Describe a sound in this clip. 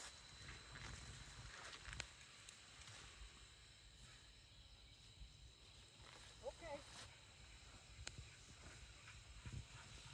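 People walk through tall dry grass, the stems swishing and crackling.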